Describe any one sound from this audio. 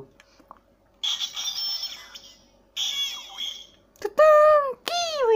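A toy device plays electronic sound effects and musical tones.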